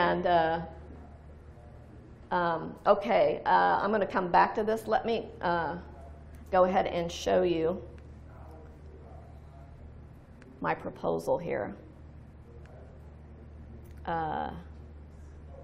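A woman speaks calmly into a microphone, heard through loudspeakers in a large room, with pauses.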